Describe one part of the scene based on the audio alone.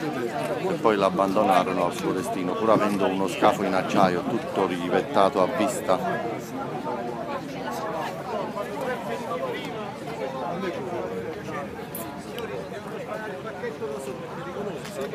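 A crowd of people chatters and calls out close by, outdoors.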